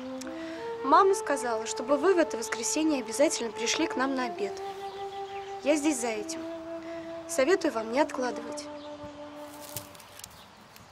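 A young woman sings.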